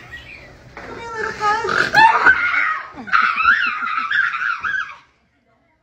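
A young woman shrieks and laughs.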